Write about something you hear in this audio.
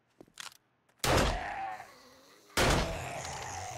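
A pistol fires twice, loud and close.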